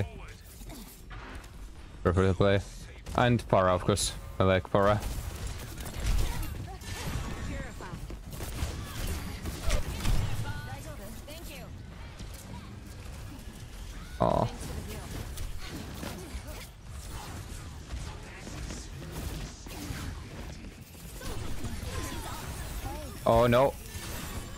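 Game weapons fire and clatter in quick bursts.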